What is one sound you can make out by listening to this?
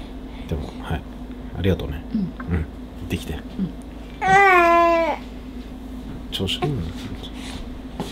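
A man speaks close by in a casual, playful voice.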